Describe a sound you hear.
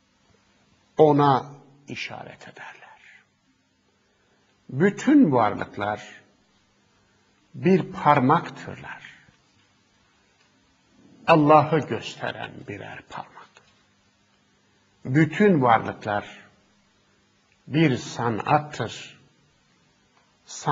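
A middle-aged man speaks calmly into a close microphone, in short phrases with pauses.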